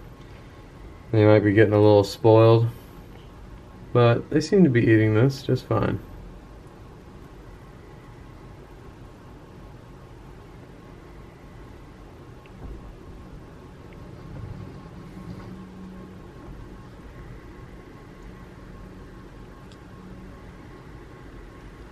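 Small tortoises munch softly on damp food.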